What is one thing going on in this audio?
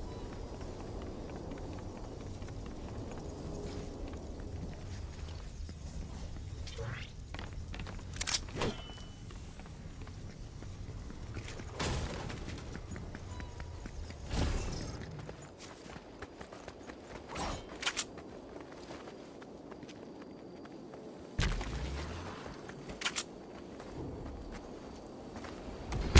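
Quick footsteps run over a hard floor and then through grass.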